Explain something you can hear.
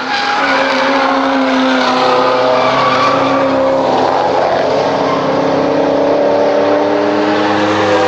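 A sports car engine roars loudly as the car speeds past.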